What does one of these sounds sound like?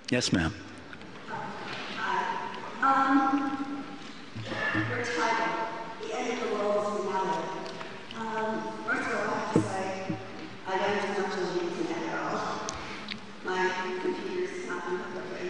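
A woman speaks into a microphone from the audience.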